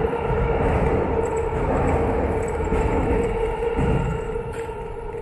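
A motor scooter drives past close by.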